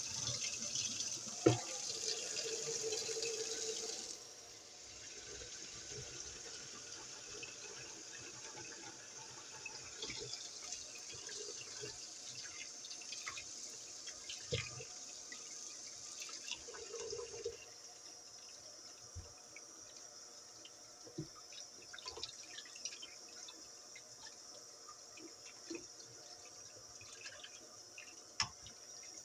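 Tap water runs steadily into a metal sink.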